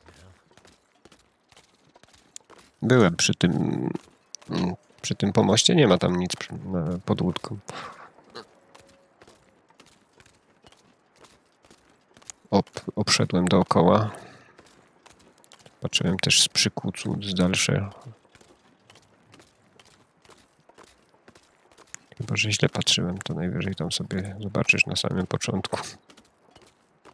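Footsteps crunch steadily on ice.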